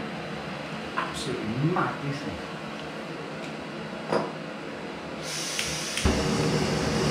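Small metal parts clink and click as a stove is handled.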